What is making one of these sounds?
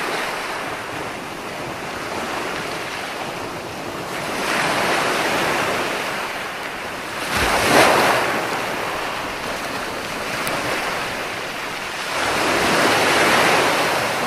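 Waves roll in and crash onto the shore in steady, rushing surges.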